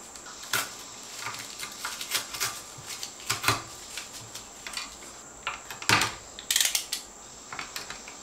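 Plastic and wire rustle and click as hands fit a wire into an electrical box.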